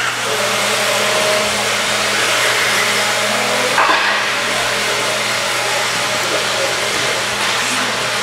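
Small remote-control car motors whine and buzz as the cars race around a track.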